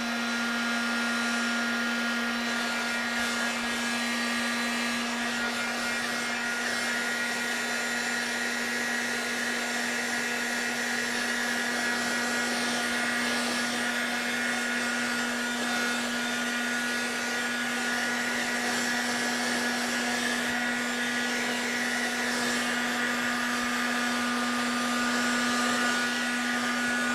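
A heat gun blows with a steady, loud whirring hum.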